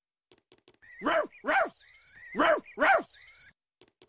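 A parrot squawks loudly a few times.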